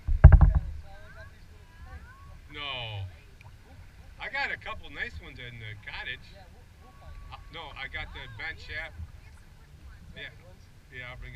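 A man talks from a nearby canoe.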